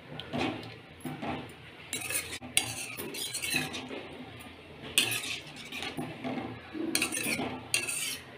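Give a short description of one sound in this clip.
A spoon scrapes and stirs thick sauce in a metal pan.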